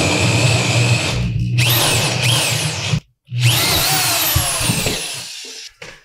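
An electric drill whirs and whines as it bores.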